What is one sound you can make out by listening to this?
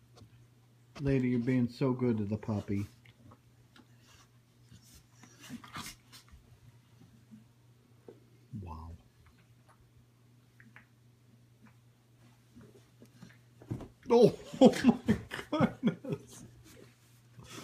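A dog growls and snarls playfully up close.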